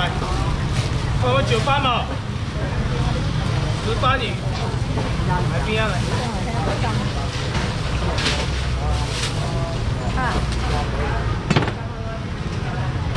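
A busy crowd murmurs and chatters all around.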